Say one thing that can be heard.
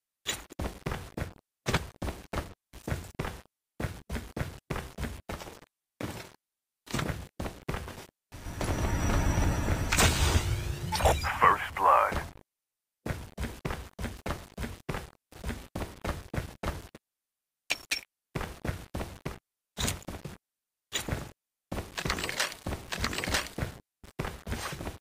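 Quick footsteps run over a hard floor.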